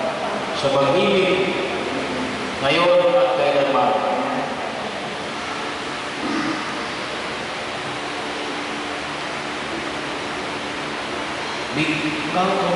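A man reads out a prayer in a calm voice in an echoing hall.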